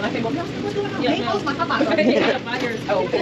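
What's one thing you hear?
A woman talks across a counter, nearby.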